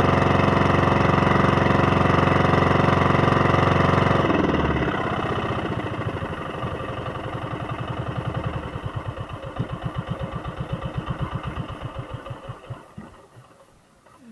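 A boat engine roars loudly, then slows to a chugging putter and stops.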